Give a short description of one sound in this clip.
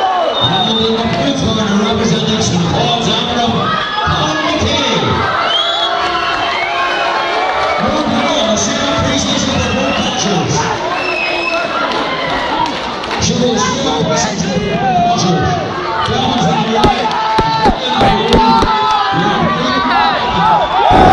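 A crowd of spectators chatters and shouts loudly in an echoing hall.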